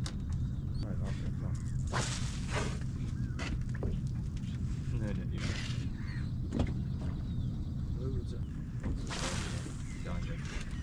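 A fishing rod swishes through the air as it is cast.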